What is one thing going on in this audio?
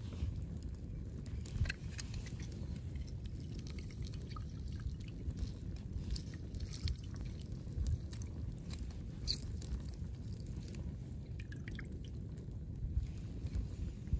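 A hand citrus press squeezes lemon juice into a steel pitcher.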